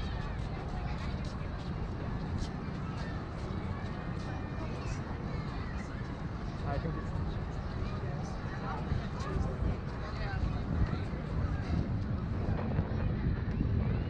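Men and women chat quietly nearby as they pass.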